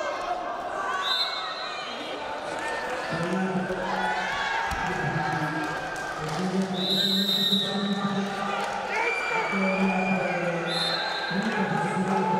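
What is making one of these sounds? A referee blows short, shrill whistle blasts.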